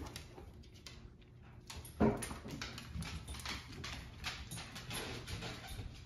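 A large dog's paws click on a wooden floor as it walks.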